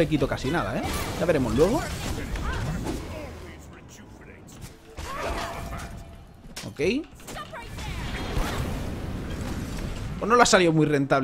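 Fiery magic blasts whoosh and crackle.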